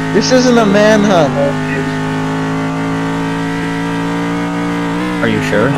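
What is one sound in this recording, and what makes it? A racing car engine drones at high speed, steady in pitch.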